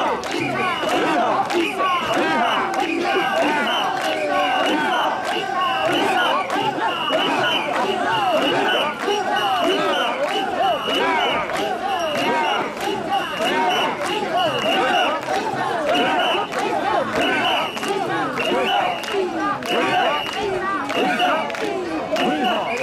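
A large crowd of men chants loudly and rhythmically close by.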